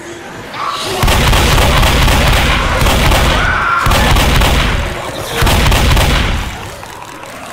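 A shotgun fires several loud blasts in quick succession.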